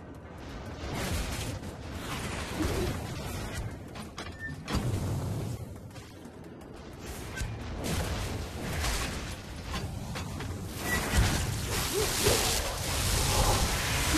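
Game combat effects clash, whoosh and boom.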